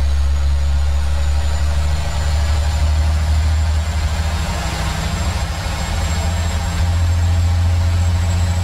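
Tyres rumble and hiss on the road.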